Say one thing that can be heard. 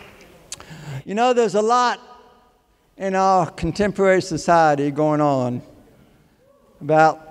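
An elderly man speaks with animation through a microphone in a large hall.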